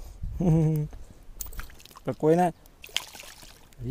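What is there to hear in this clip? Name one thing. A fish splashes and thrashes in shallow water.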